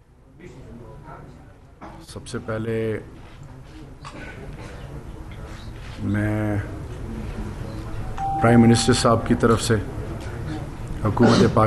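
A man speaks steadily into microphones, with a slight room echo.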